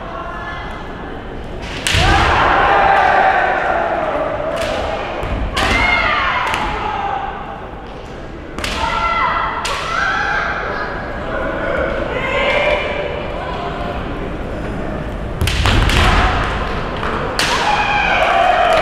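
Fencers shout loud, drawn-out cries in a large echoing hall.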